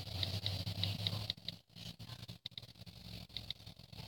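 A fingertip taps lightly on a touchscreen.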